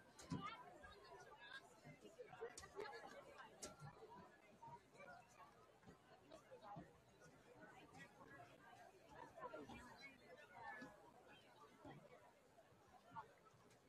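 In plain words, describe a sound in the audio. A crowd of players and spectators chatters and calls out outdoors.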